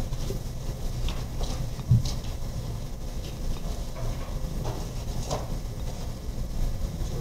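People shuffle and step about on a hard floor.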